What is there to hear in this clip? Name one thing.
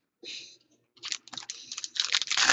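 Trading cards rustle and shuffle between fingers.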